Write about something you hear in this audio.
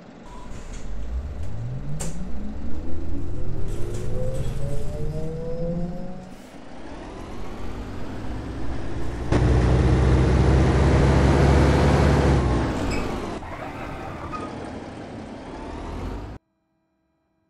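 A bus engine revs up and whines as the bus pulls away.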